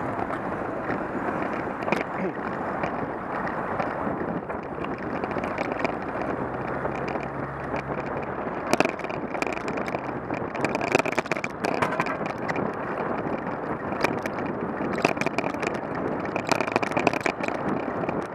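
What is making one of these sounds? A bicycle rattles and clicks over bumps in the road.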